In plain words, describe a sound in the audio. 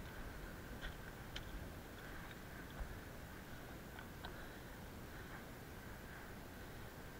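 Wind gusts across an exposed mountain ridge.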